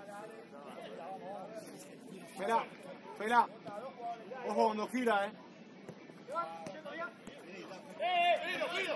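Young players shout and call to each other outdoors across a football pitch.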